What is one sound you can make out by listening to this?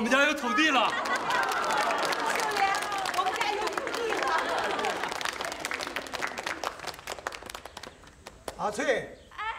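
People clap their hands rapidly.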